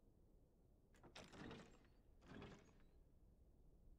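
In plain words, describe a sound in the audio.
A heavy door swings open with a loud whoosh.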